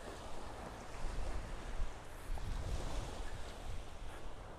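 Wind gusts past outdoors.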